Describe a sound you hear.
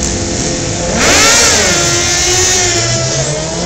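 Two motorcycles roar away at full throttle.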